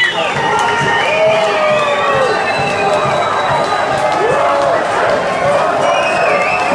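Loud electronic dance music plays through big speakers in an echoing club.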